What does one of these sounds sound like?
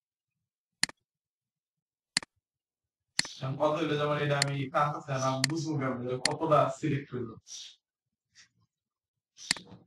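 A computer mouse clicks sharply a few times.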